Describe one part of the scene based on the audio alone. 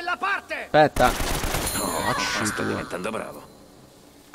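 Gunshots fire in quick bursts and echo.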